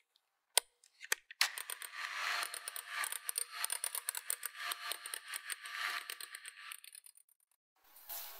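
An electric hand mixer whirs as its beaters whip a thick batter.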